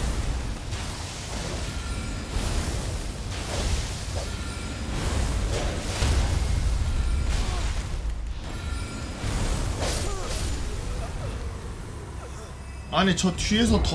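Magic blasts crackle and boom amid a fight.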